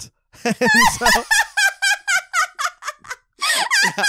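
A young man laughs heartily into a close microphone.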